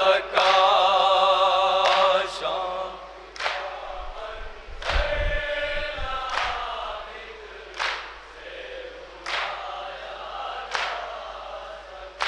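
A man chants a mournful lament loudly through a microphone.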